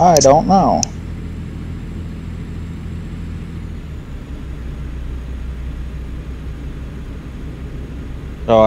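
A truck engine drones low and steady.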